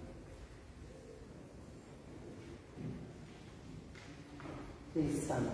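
A woman speaks into a microphone, heard through loudspeakers in a large echoing hall.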